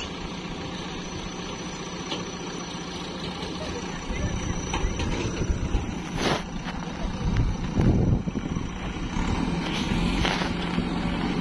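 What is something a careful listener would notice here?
A loader bucket scrapes and pushes through wet soil.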